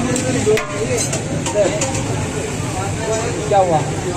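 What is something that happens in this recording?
A metal spoon scrapes and clinks on a metal plate.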